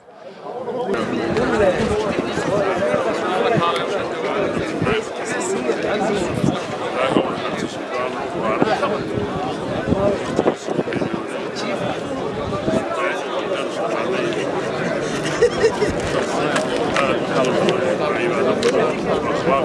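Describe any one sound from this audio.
An elderly man speaks firmly into a microphone close by.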